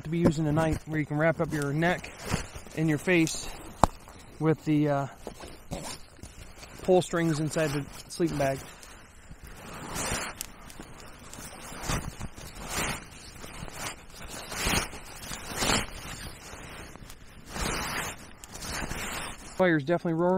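A sleeping bag rustles and swishes as it is handled.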